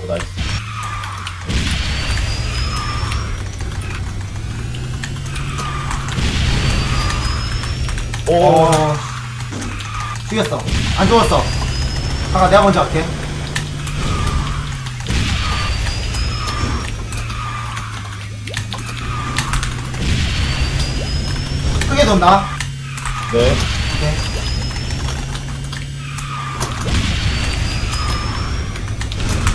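A racing game's kart engine hums steadily.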